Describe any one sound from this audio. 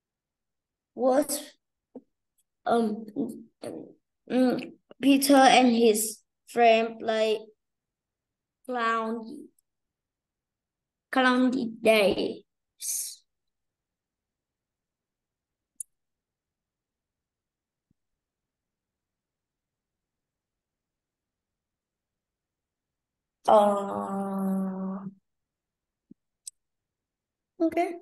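A woman speaks clearly through an online call, pausing between phrases.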